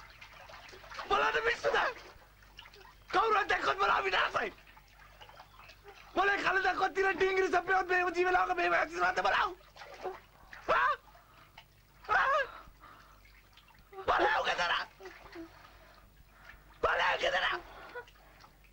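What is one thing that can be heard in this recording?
A man speaks loudly and angrily nearby.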